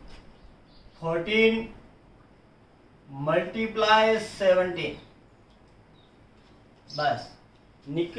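A man speaks nearby in short phrases, explaining calmly.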